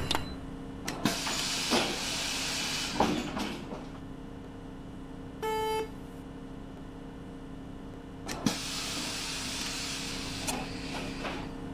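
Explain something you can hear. Air doors on a bus hiss open and shut.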